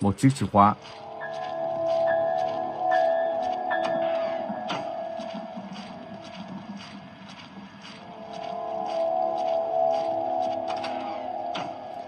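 Soft electronic music plays a slow melody.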